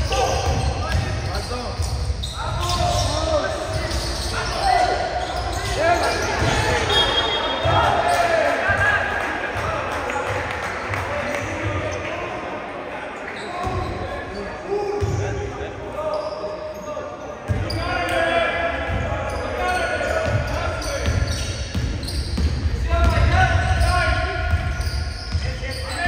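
A basketball bounces with hollow thuds on a wooden floor.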